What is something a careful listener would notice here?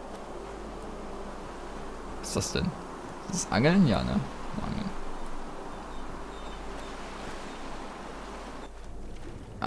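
Water laps gently against a wooden pier.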